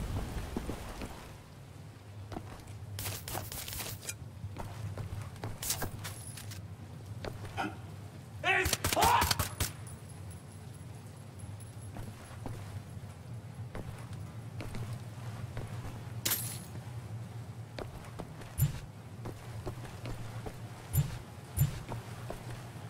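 Footsteps thud steadily on a floor.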